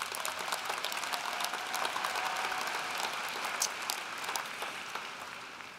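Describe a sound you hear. A large audience applauds in a big echoing hall, the applause fading toward the end.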